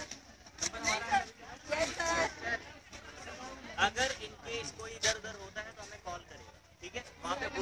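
A crowd of young people chatter and shout loudly nearby outdoors.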